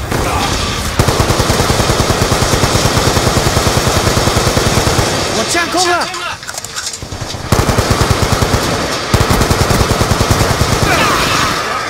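Rapid automatic gunfire rattles in fast bursts.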